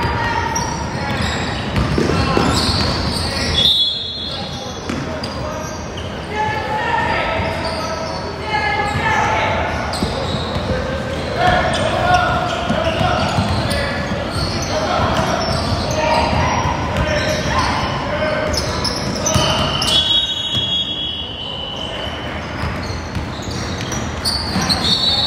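Young boys call out to each other across the court.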